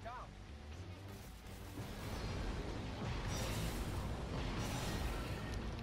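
Gunfire and energy blasts crackle in a fight.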